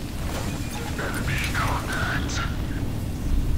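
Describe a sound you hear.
A young woman speaks softly into a microphone, close by.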